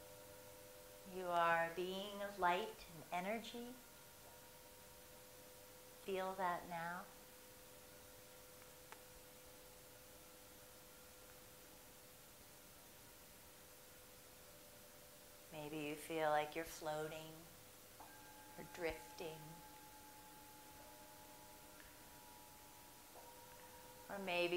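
A woman speaks calmly and softly close by.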